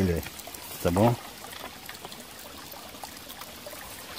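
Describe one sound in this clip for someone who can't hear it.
Water trickles gently over stones.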